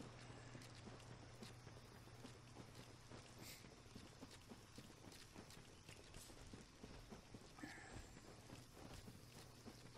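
Armoured footsteps crunch steadily through undergrowth.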